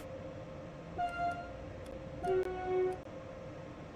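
A train horn sounds twice in short blasts.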